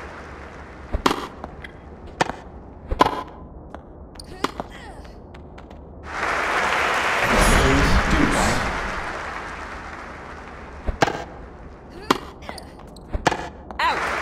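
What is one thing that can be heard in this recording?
A tennis ball is struck sharply back and forth with rackets.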